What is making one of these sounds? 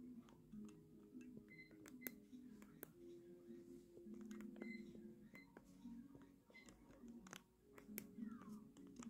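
Cheerful video game music plays from a television speaker.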